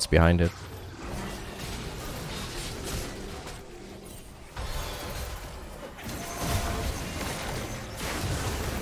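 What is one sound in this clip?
Magic spells crackle and whoosh in a video game.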